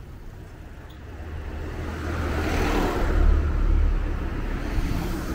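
A vehicle drives past close by on the street.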